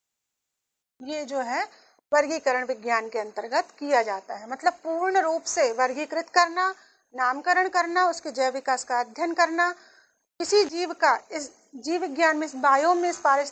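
A woman speaks steadily into a microphone, as if teaching.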